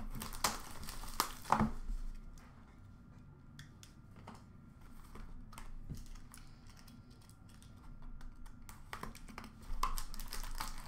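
Small boxes clatter in a plastic bin.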